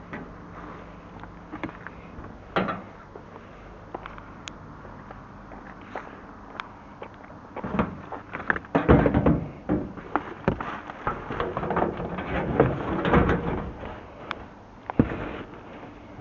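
A plastic bin lid bangs shut.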